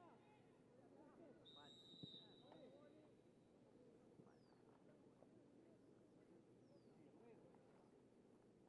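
Players shout across an open field outdoors.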